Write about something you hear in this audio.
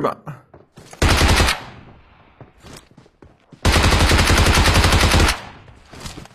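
A rifle fires a rapid burst of shots.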